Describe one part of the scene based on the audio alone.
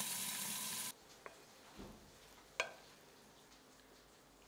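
A wooden spoon scrapes and knocks in a pot of rice.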